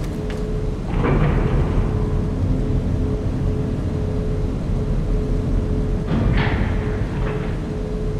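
A metal lift clanks as it starts and stops.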